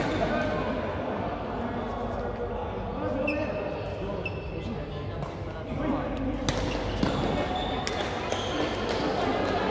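Players' voices echo in a large hall.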